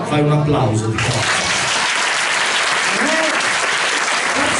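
A crowd applauds and cheers loudly.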